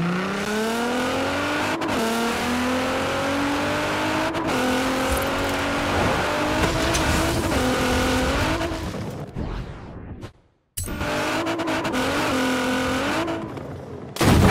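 A sports car engine revs hard and rises in pitch as it speeds up.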